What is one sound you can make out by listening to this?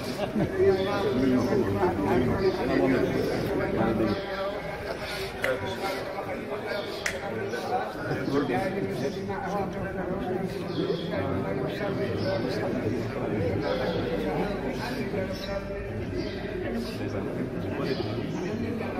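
Several men murmur and chant together.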